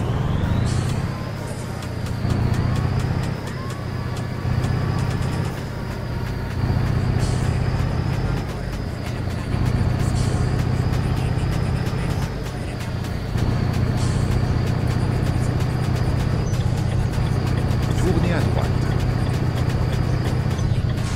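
A truck engine hums low and steadily, swelling and easing.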